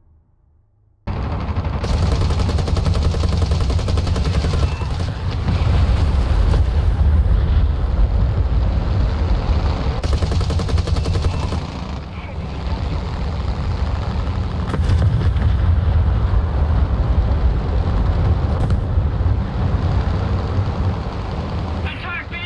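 A propeller plane's engine drones steadily and loudly.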